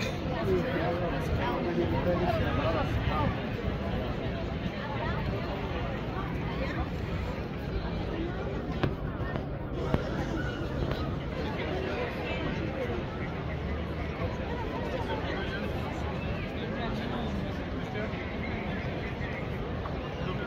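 A large outdoor crowd chatters with many overlapping voices of men and women.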